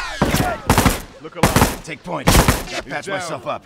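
Gunshots ring out in loud bursts.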